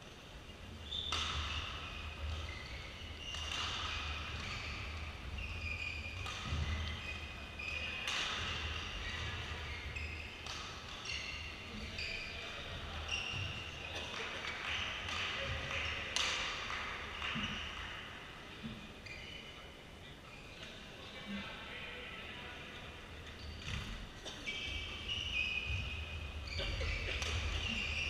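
Rackets strike a shuttlecock back and forth in a large echoing hall.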